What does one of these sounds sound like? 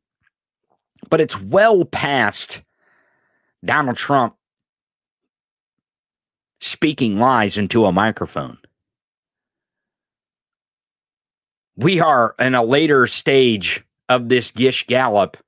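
A man speaks with animation close to a microphone, in short bursts with pauses.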